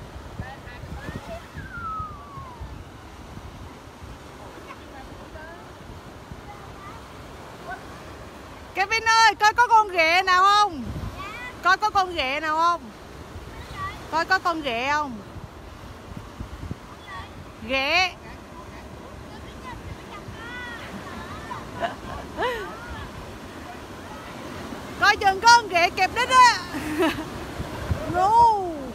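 Waves wash up on the shore.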